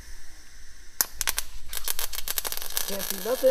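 A welding torch crackles and sizzles against metal.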